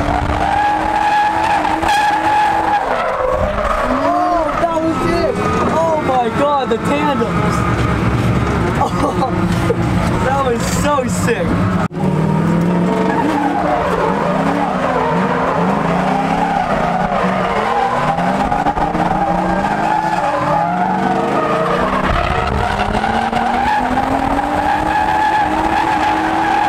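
A car engine roars and revs up and down close by.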